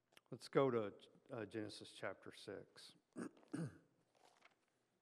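An older man speaks calmly into a microphone in a large echoing room, then falls quiet.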